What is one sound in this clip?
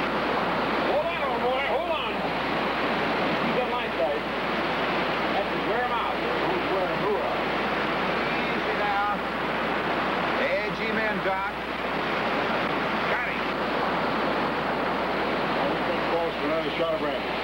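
Men call out excitedly to each other outdoors.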